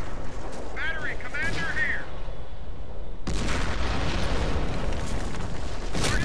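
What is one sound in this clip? Gunfire crackles and rumbles in a battle.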